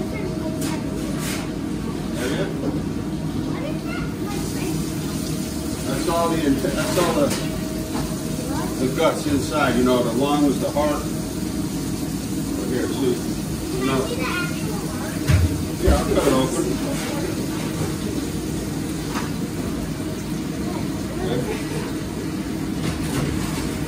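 A knife scrapes and slices through fish.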